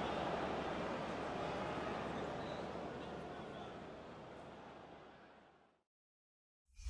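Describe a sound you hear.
A large stadium crowd cheers loudly and slowly fades away.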